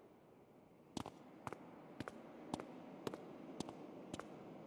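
Footsteps tap on a hard, smooth floor.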